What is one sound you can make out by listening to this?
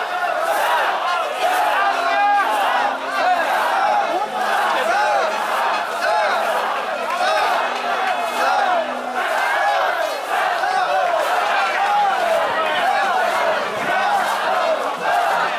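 A large crowd of men chants and shouts loudly together outdoors.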